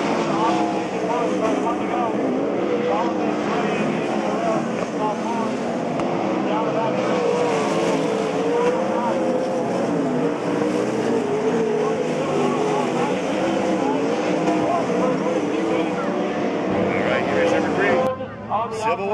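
Racing car engines roar and rev loudly.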